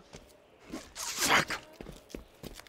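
A man curses sharply nearby.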